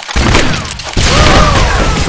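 A small explosion bursts with a puff.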